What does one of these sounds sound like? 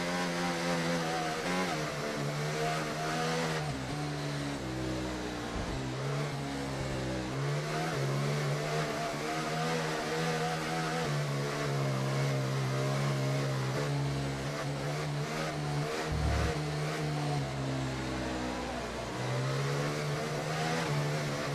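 A racing car engine whines steadily, rising and falling in pitch as the car shifts gears.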